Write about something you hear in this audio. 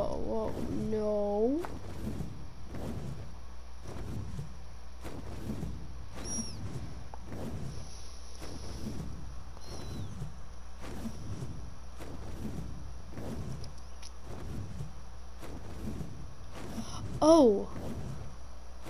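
A large winged creature's wings beat in a steady, rhythmic whoosh.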